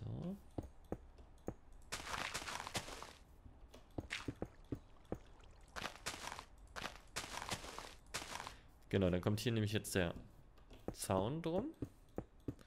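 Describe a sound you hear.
Stone and earth blocks crunch and crumble as they are broken.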